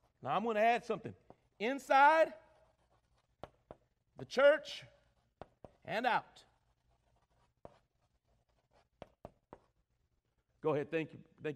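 A man speaks slowly and with emphasis through a microphone.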